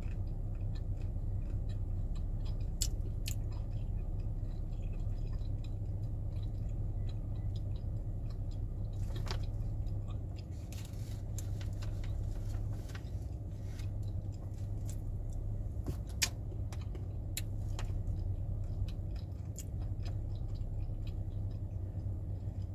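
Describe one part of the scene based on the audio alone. A snack bag crinkles and rustles.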